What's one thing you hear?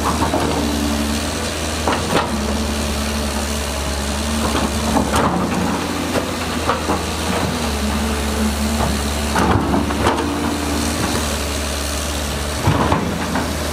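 Rocks and soil tumble and clatter out of a dump truck.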